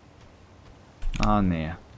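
A young man speaks briefly and with animation into a close microphone.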